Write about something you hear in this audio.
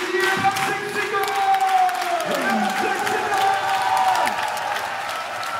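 People in a crowd cheer and whistle.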